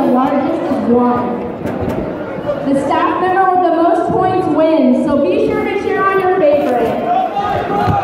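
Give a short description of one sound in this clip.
A man speaks loudly through a microphone, echoing in a large hall.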